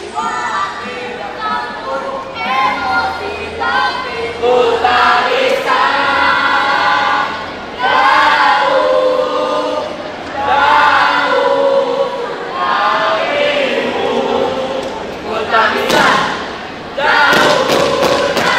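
A group of young people chant and shout loudly in unison in a large echoing hall.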